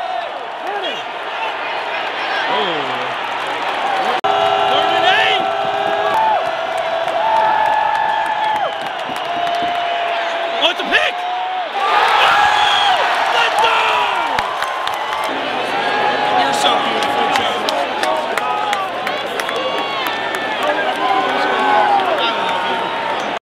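Fans nearby shout and yell excitedly.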